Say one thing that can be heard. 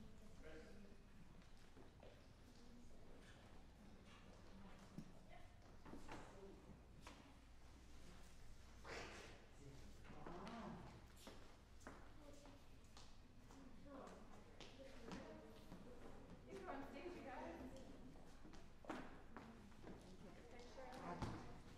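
An audience chatters and murmurs quietly in a large, echoing hall.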